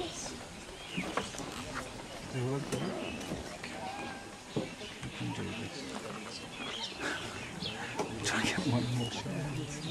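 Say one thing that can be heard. A tiger growls low and close.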